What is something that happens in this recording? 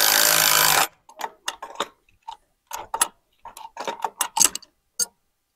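Metal wire clinks and rattles.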